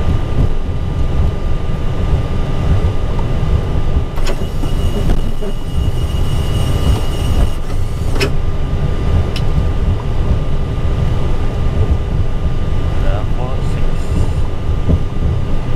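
A steady low rumble of aircraft engines fills a cockpit.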